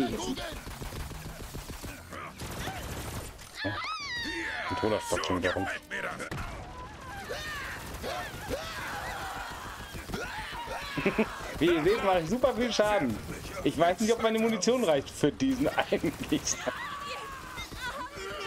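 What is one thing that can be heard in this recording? Gunfire crackles from a video game.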